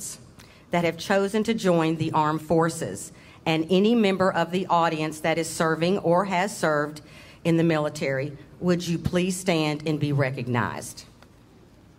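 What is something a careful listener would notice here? A woman speaks through a microphone and loudspeakers in a large hall.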